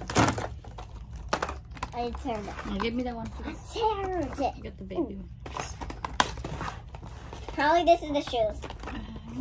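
Cardboard packaging rustles and crinkles.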